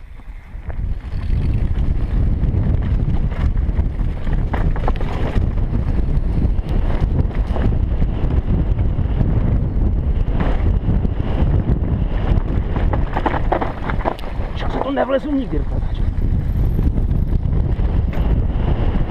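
Bike tyres rattle and crunch over a rough dirt trail.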